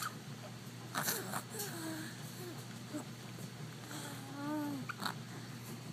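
A baby coos and babbles.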